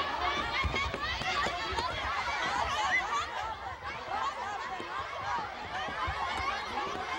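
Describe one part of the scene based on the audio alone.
Feet shuffle and stamp on a wooden stage.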